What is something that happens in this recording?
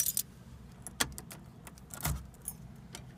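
A key clicks in a car's ignition.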